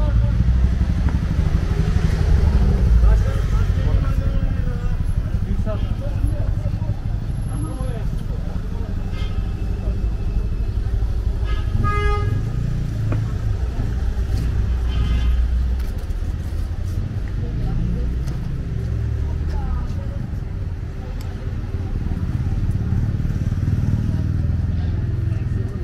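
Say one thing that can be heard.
Footsteps shuffle on a busy pavement outdoors.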